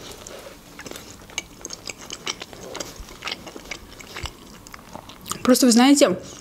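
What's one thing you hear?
Small mouth clicks and chewing sounds come close up.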